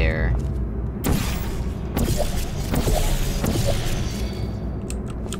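A portal gun fires with a sharp electronic zap.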